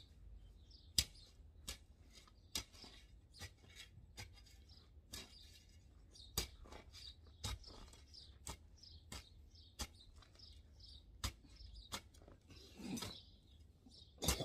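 A shovel thumps and scrapes into the soil again and again.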